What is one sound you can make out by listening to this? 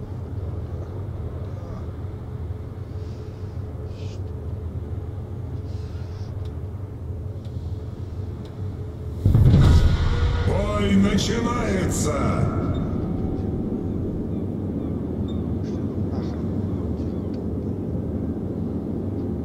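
A large ship's engine rumbles low and steady.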